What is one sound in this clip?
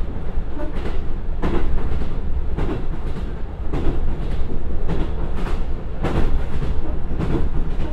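A diesel train engine rumbles steadily.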